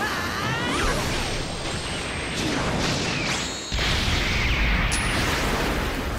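A burst of energy whooshes and explodes.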